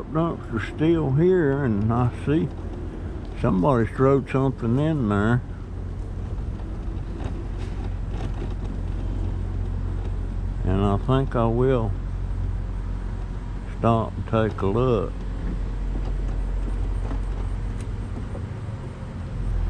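Small tyres roll over asphalt.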